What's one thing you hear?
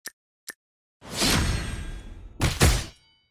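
Battle sounds clash and burst with magical effects.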